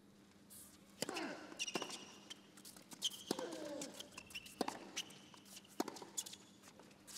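A racket strikes a tennis ball with sharp pops.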